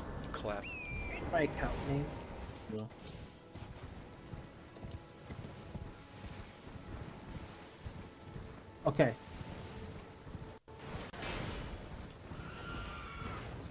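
A horse's hooves thud steadily as it gallops over grass.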